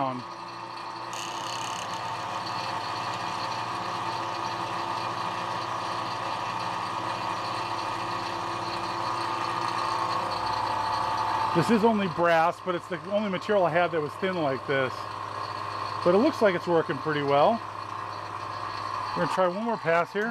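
A milling machine whirs steadily as its cutter grinds through metal.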